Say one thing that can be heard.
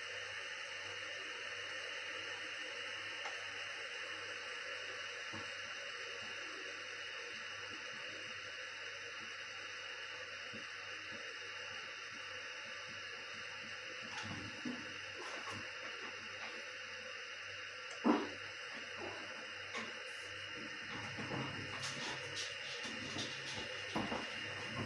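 A kettle on a stove hisses steadily as the water heats.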